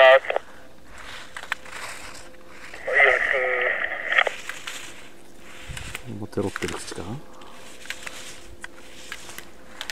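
A slalom pole snaps back with a sharp clack as a skier knocks it aside.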